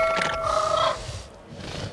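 A small dinosaur hisses with its jaws open.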